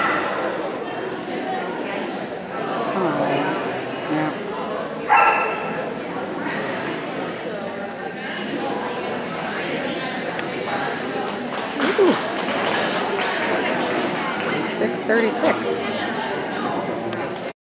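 A crowd murmurs in the background of a large echoing hall.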